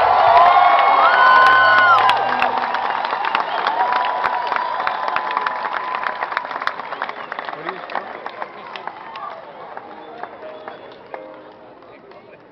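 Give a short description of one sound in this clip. An audience claps and then the applause slowly fades.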